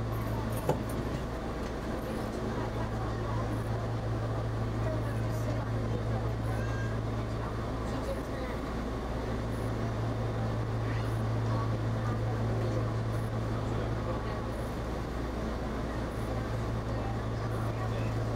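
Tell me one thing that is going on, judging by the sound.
A train engine idles with a steady low hum.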